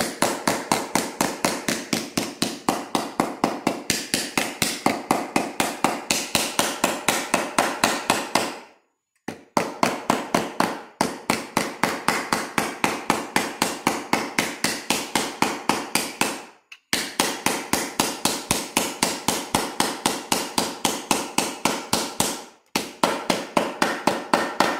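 A hammer taps rapidly and steadily on a metal punch.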